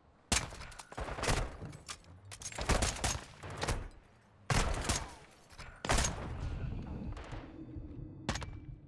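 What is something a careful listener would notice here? Gunshots fire in loud bursts and echo.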